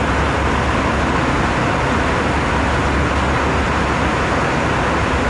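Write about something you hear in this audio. Aircraft engines roar loudly and steadily.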